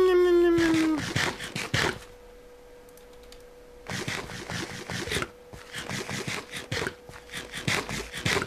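Crunchy chewing sounds come in quick bursts.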